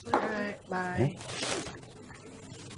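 A young woman speaks quietly into a phone.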